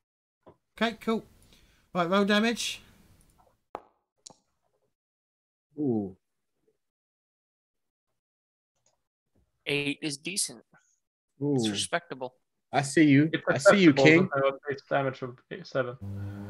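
Several men talk in turn over an online call.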